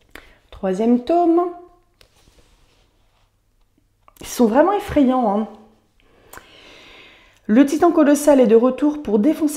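A young woman speaks with animation close to a clip-on microphone, pausing between phrases.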